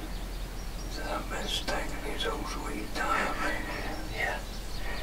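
A wild turkey gobbler gobbles.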